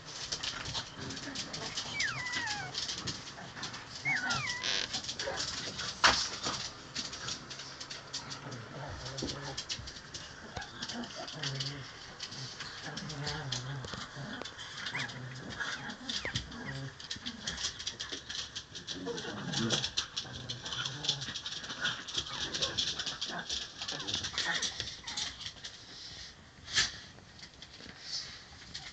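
Puppies growl and yip softly as they play-fight close by.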